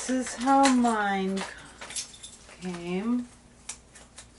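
A woman speaks expressively close by, with drawn-out sing-song tones.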